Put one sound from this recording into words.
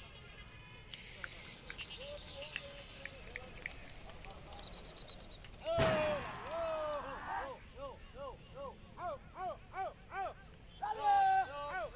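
Pigeons flap their wings as a flock takes off.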